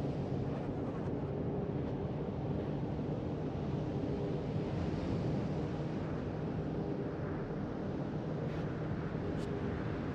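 Water rushes and churns along a moving ship's hull.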